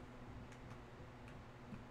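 A fire crackles.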